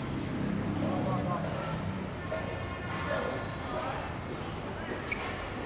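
Men talk at a distance outdoors.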